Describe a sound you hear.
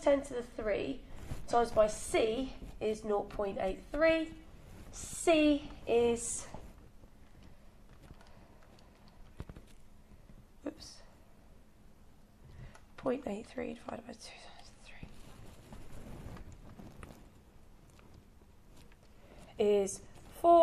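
A young woman speaks calmly and explains, close by.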